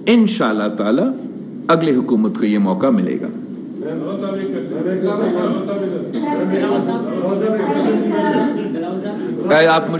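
A young man speaks with animation into microphones.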